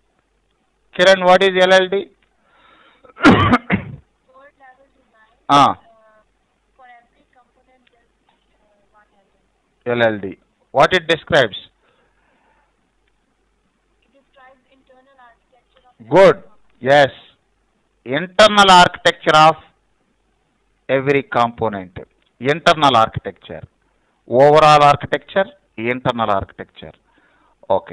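A man speaks calmly into a microphone in short bursts, with pauses.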